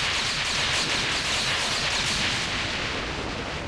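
A loud explosion roars and crackles.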